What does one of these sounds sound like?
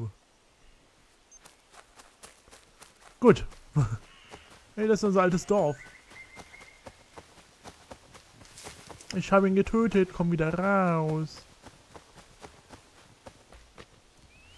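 Footsteps run over grass and earth.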